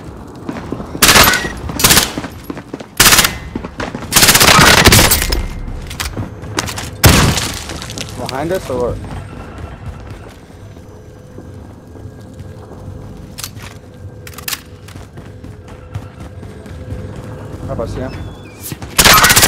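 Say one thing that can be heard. Gunfire bursts out loudly in short volleys.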